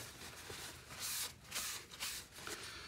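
A cloth rubs and wipes across a stone surface.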